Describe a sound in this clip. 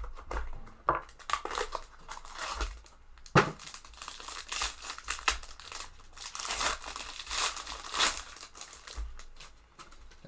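A foil pack crinkles as hands tear it open.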